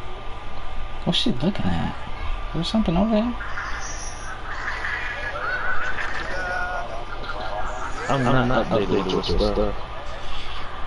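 A young man speaks cheerfully and playfully.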